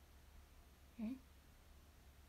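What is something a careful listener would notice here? A young woman makes a brief, soft sound with her voice, close by.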